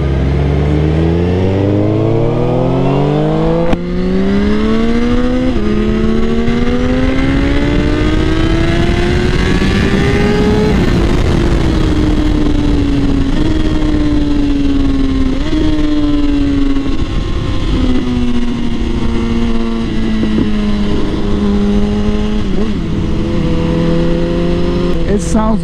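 Wind roars past the rider.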